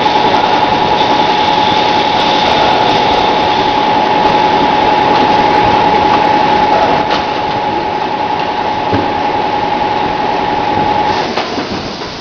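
A machine hums with a steady whine.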